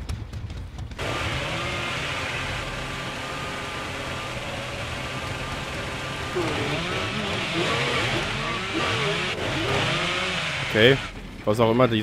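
A chainsaw roars steadily, then cuts off.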